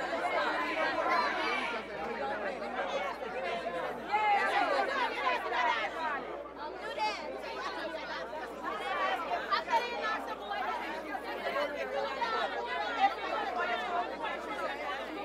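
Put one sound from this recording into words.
A crowd chatters and cheers nearby.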